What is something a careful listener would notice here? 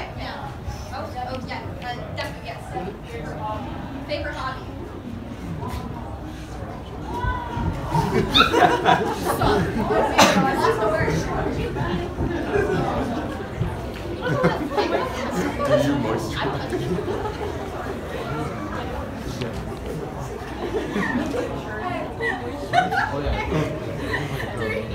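A crowd of young people chatter and laugh in a large room.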